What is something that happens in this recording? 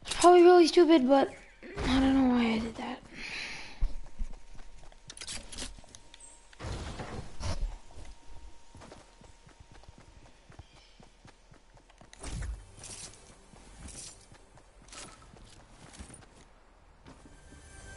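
Quick footsteps patter on grass and dirt.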